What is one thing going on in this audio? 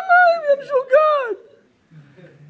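Men laugh heartily close by.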